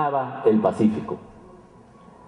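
An elderly man speaks with emotion into a microphone.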